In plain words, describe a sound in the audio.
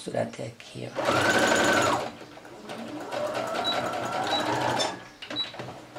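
A sewing machine whirs as it stitches.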